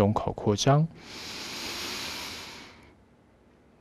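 A young man breathes in deeply through a headset microphone.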